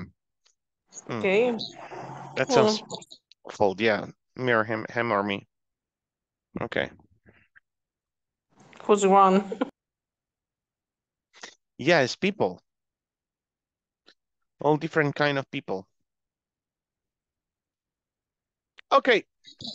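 A young man speaks with animation over an online call, in short bursts with pauses.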